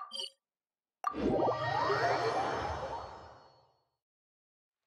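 A magical whoosh swells and slowly fades.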